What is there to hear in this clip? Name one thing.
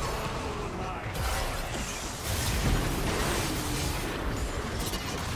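Magic spells blast and crackle during a fierce fight.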